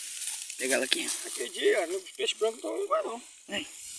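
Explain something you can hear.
Dry grass rustles as a hand reaches into it.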